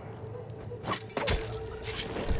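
A heavy blow lands with a sharp thud.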